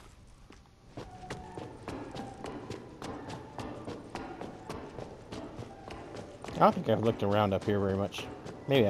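Footsteps tap quickly across a hard, echoing floor.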